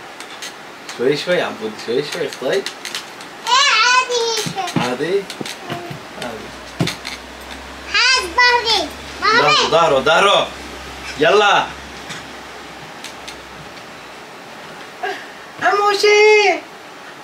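Young boys talk and laugh excitedly nearby.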